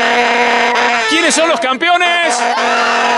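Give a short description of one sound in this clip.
A group of boys cheers and shouts together.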